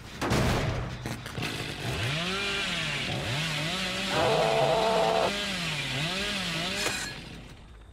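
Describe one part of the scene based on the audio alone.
A chainsaw engine revs up and down loudly, then cuts off.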